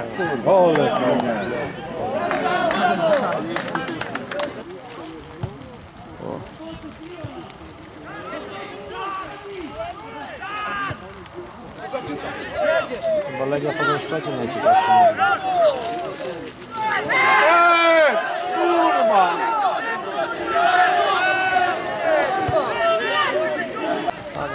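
Young men shout and call out across an open outdoor pitch.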